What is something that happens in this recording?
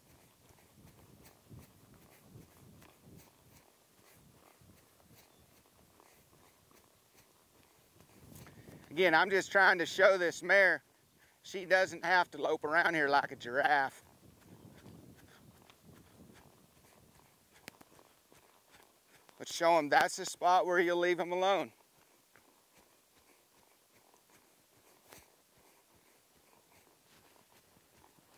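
Horse hooves thud softly on soft dirt.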